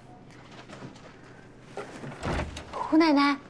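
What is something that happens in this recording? Knuckles knock on a door.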